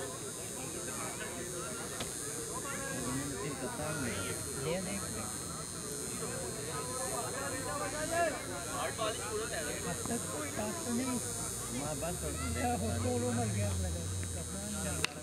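Several men talk and call out outdoors across an open field.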